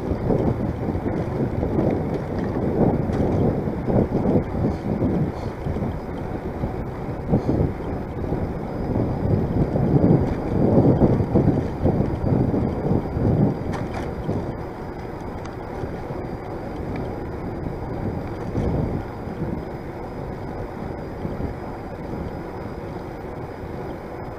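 Wind rumbles and buffets loudly against a microphone.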